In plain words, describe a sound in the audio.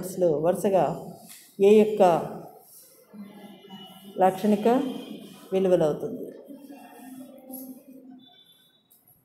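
A woman speaks calmly, heard close to the microphone.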